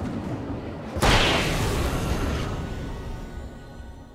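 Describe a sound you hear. A loud blast bursts and fades.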